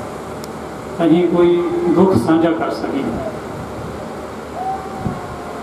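An elderly man sings through a microphone and loudspeakers.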